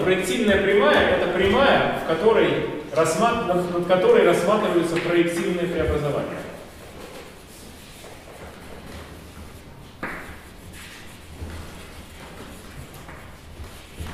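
Chalk scratches and taps on a board.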